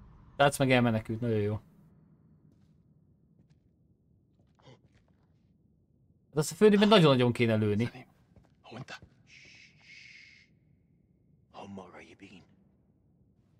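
A man speaks loudly and with feeling.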